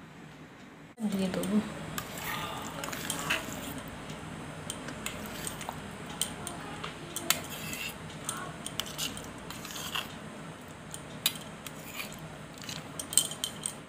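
A spoon scrapes and taps against a steel bowl.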